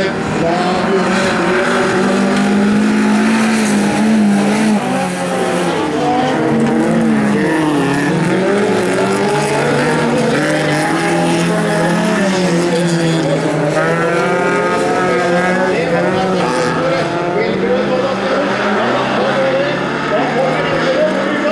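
Several car engines roar and rev hard as cars race past.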